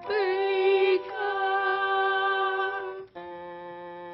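A teenage boy sings loudly and with feeling.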